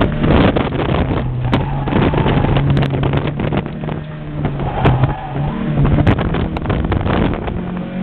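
A car engine hums loudly and rises and falls as the car speeds through turns.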